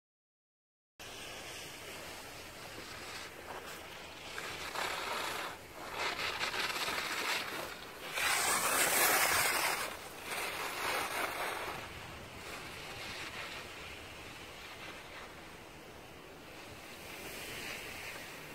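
Wind rushes past outdoors in uneven gusts.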